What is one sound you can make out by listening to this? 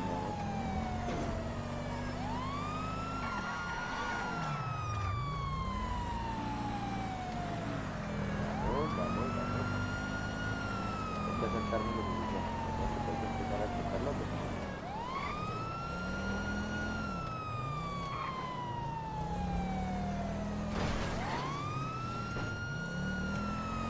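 A car engine roars steadily.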